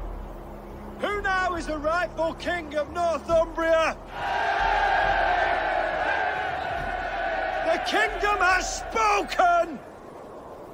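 A man calls out loudly to a crowd.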